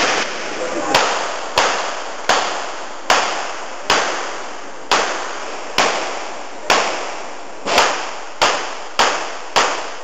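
Pistol shots crack one after another, each echoing briefly.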